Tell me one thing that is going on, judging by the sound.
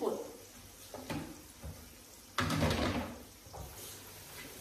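Dishes clatter at a sink.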